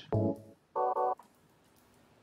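A menu beeps as a selection is made.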